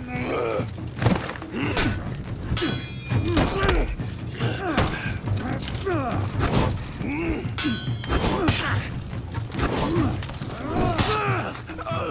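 Swords clash and ring with sharp metallic strikes.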